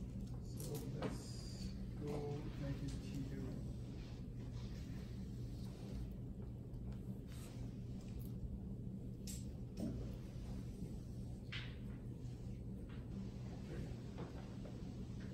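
A man speaks calmly, slightly distant in a room.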